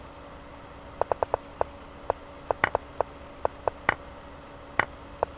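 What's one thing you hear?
Short sharp clicks sound in quick bursts as chess moves are made.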